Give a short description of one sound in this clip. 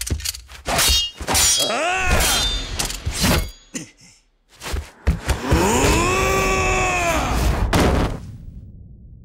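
Swords clash and ring sharply.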